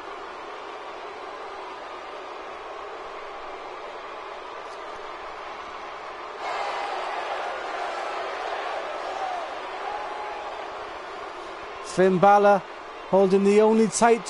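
A large crowd cheers in a big echoing arena, growing louder partway through.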